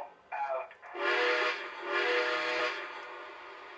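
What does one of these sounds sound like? A toy steam locomotive's whistle blows twice.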